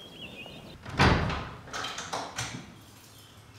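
A heavy wooden door bangs and knocks as it swings open.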